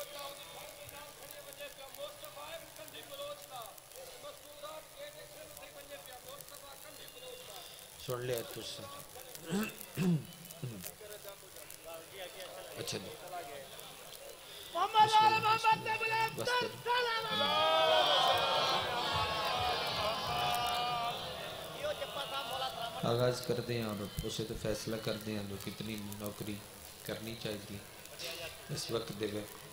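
A man speaks with passion into a microphone, heard through loudspeakers.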